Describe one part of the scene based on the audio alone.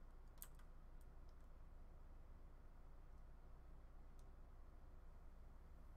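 A block cracks and breaks with short clicks.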